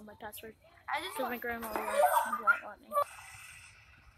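A young woman shrieks and laughs excitedly, heard through an online call.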